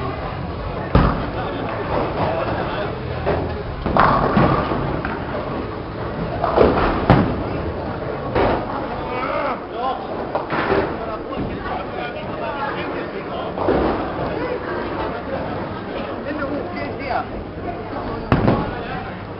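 Bowling pins clatter as a ball strikes them.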